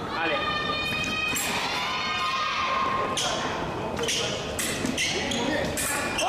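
Fencing blades clash and click together.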